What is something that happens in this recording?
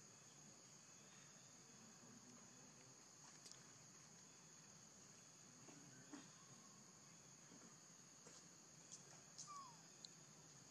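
A baby monkey gives soft, short squeaks close by.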